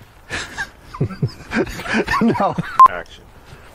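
A second man laughs and talks with animation.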